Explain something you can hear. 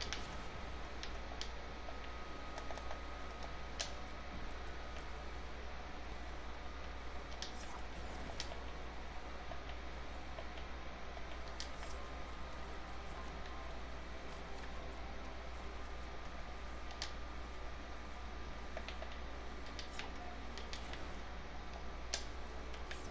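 Wall pieces snap into place with short, sharp clicks.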